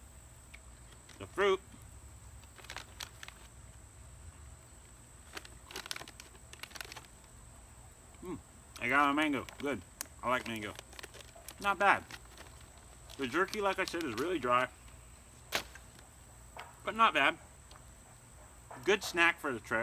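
A plastic wrapper crinkles in a man's hands.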